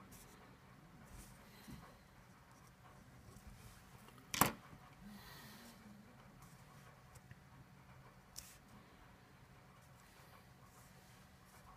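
A pen scratches and taps on paper.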